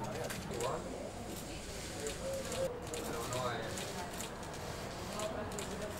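A wheeled case rattles as it is pulled over pavement.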